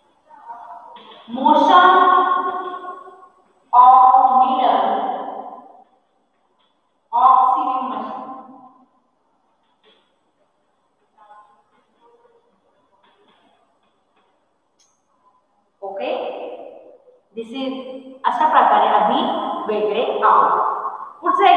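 A woman speaks clearly and slowly, as if teaching, close by.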